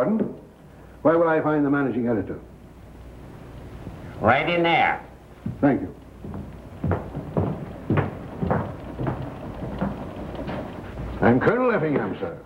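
A man asks a question in a calm, polite voice.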